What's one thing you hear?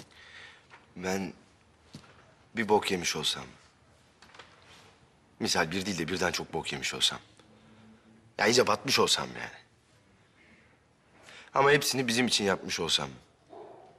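A man speaks in a low, serious voice close by, with pauses between phrases.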